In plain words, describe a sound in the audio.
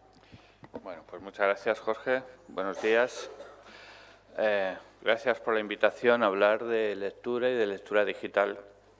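A middle-aged man speaks calmly into a microphone in a hall.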